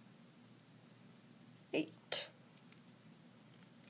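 Fingers fiddle with a small plastic part, making soft clicks.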